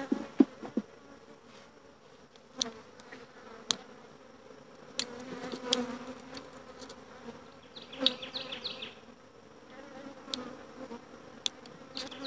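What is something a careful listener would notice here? A hive tool scrapes and knocks against wooden frames.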